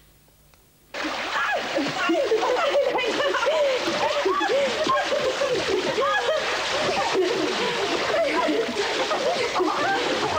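Water splashes loudly as children thrash and play in a pool.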